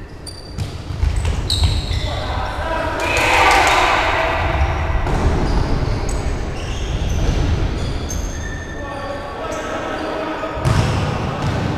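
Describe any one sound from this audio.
A ball thumps as it is kicked.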